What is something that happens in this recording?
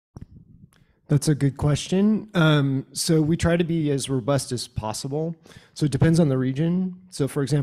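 A middle-aged man speaks into a microphone.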